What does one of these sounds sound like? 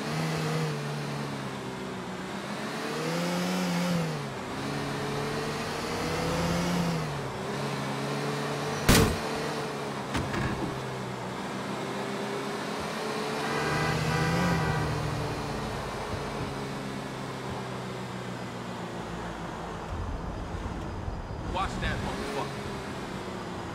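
Tyres roll over a road.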